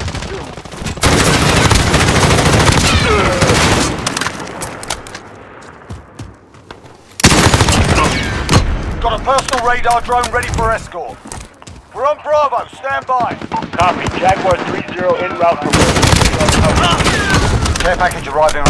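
Rifle gunfire cracks in rapid bursts.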